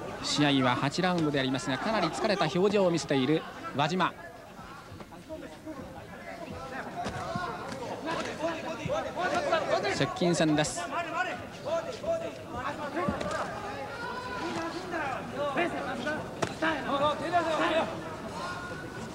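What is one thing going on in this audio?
Gloved punches thud against bodies.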